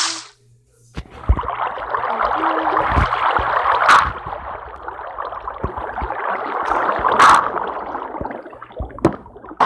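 Water pours and flows with a steady rushing.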